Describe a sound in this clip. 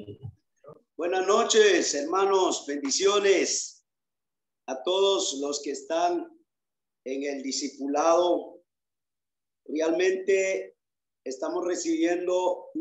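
A man speaks with animation, heard through an online call.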